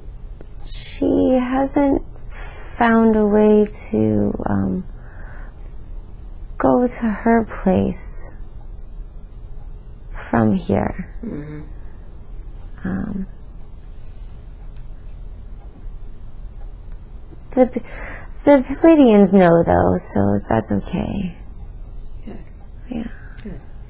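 A woman speaks softly and tearfully, close by.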